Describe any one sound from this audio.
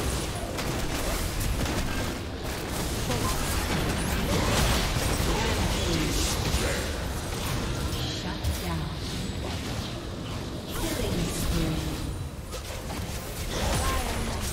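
Magic blasts and hits crackle and thud in a fast game battle.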